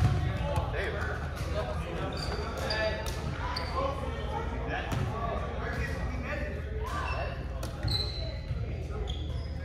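A volleyball thuds off players' hands.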